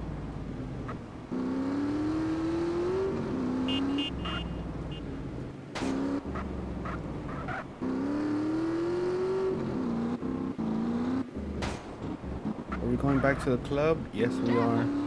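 A motorcycle engine revs and roars, rising and falling in pitch as it speeds up and shifts gears.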